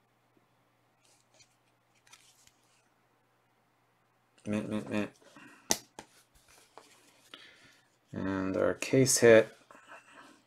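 A plastic card holder clicks and rustles in hands.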